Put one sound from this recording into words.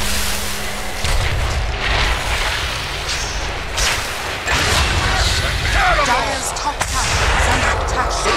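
Magic blasts and impacts crackle and boom in a fantasy battle.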